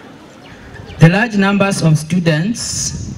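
A man speaks loudly into a microphone, heard through a loudspeaker outdoors.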